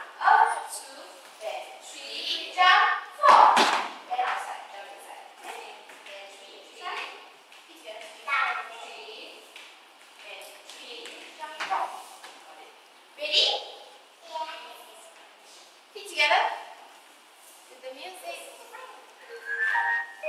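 Young children talk and call out in a room with hard walls.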